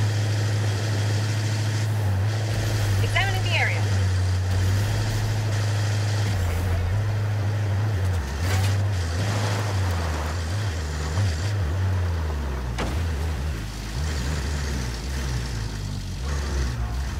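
A truck engine drones steadily as the vehicle drives.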